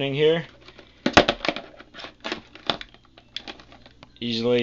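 Cables rustle and knock against plastic as they are handled.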